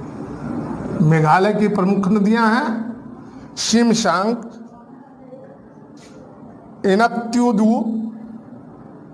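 A middle-aged man speaks clearly nearby, explaining in short bursts.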